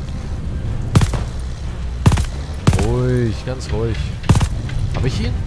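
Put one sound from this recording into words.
A rifle fires single loud shots.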